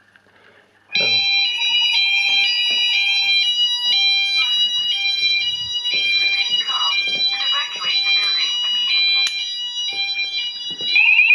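A fire alarm sounds loudly with shrill electronic tones that change pitch rapidly.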